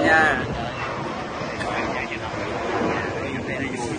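Several people talk nearby in a lively murmur.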